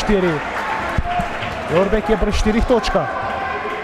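A basketball bounces on a hardwood floor with dull thuds.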